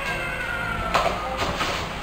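A short, falling video game tune plays through a television speaker.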